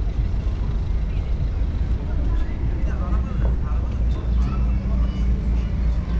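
Cars pass along the street.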